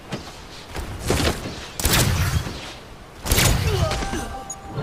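Gunfire bursts in loud, rapid volleys.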